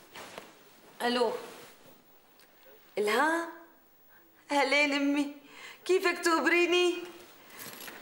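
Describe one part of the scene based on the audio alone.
A middle-aged woman speaks warmly into a telephone.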